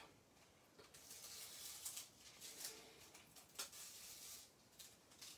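Paper rustles and peels as a cut shape is pulled free.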